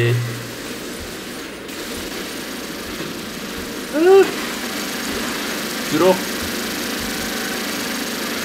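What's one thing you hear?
Heavy mechanical footsteps thud at a steady pace.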